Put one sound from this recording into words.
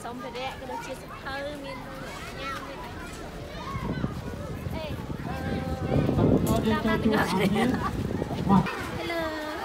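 Many children chatter and shout in the background outdoors.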